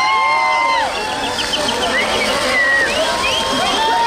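A firework fountain hisses and crackles.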